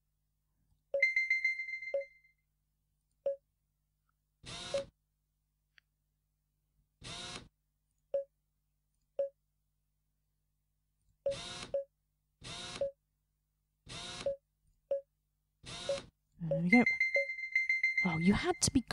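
A bright electronic chime rings out.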